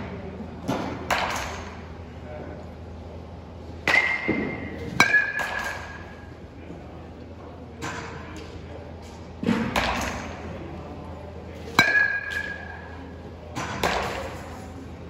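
A baseball bat cracks against a ball.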